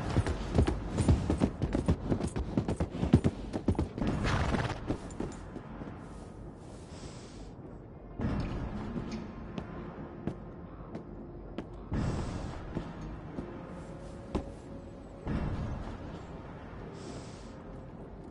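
Horse hooves clop on wooden planks.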